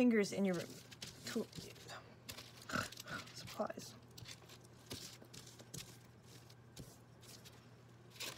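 A brush scratches lightly across foil.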